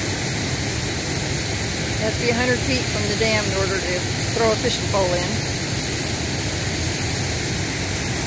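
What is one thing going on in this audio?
A river rushes and splashes over rocks.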